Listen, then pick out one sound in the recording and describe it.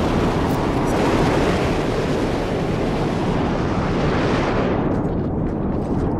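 Boots crunch over debris underfoot.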